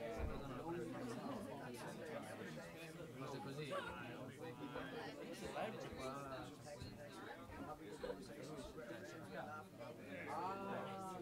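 A small jazz band plays freely.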